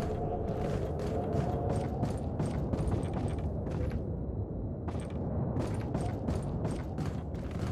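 Footsteps thud steadily on wooden boards.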